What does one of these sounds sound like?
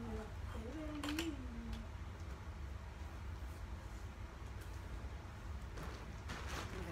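A fabric curtain rustles as it is pulled aside.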